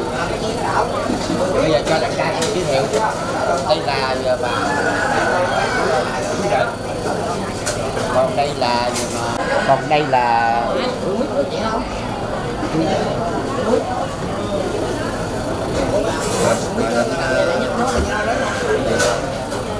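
An elderly man talks calmly up close.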